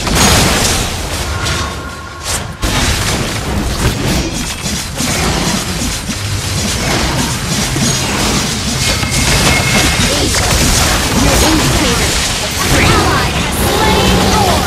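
Game spell effects whoosh and crackle in a busy battle.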